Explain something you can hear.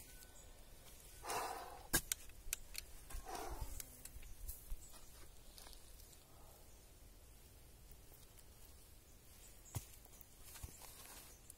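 A shovel scrapes and thuds in dry soil.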